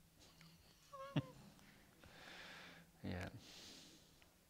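A middle-aged man laughs softly.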